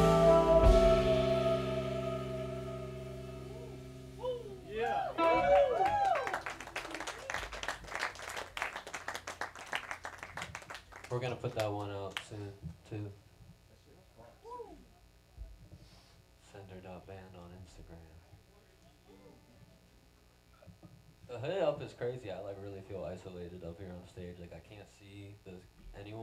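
A drum kit plays loose, free rhythms with cymbal crashes.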